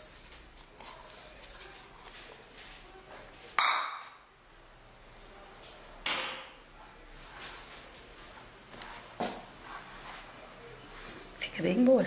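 Hands rub and squeeze crumbly dough in a bowl.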